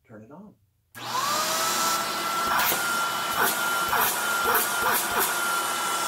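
A vacuum cleaner switches on and roars steadily with a high whine.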